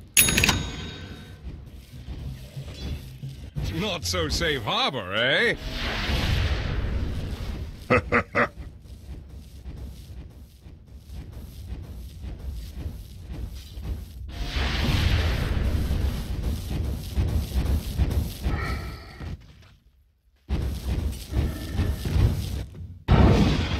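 Fire spells whoosh and crackle in a game battle.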